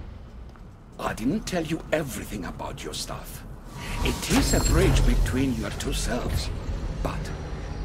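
A deep-voiced older man speaks slowly and calmly, close by.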